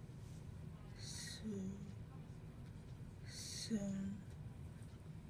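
A young girl speaks a few quiet words close by.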